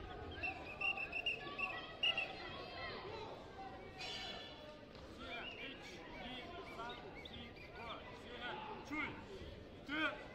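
A man calls out commands loudly in a large echoing hall.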